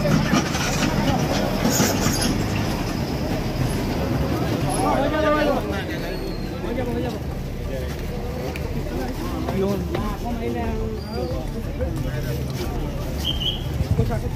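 A crowd of men shout and talk excitedly close by.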